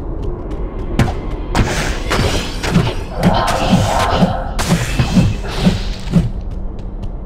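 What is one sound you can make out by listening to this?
Electric magic crackles and buzzes in bursts.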